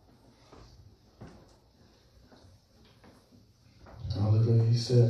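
Several people talk quietly in the background.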